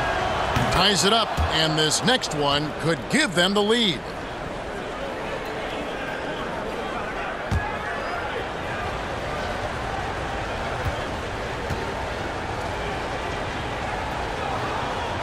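A large arena crowd murmurs steadily.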